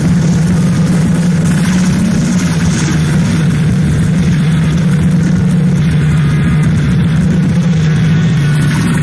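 An acoustic guitar strums steadily.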